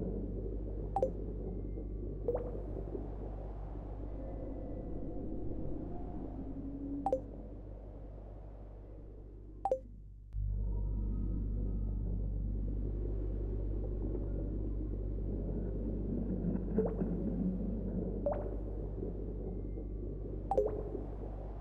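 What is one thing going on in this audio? Short soft clicks sound now and then as game menus open and close.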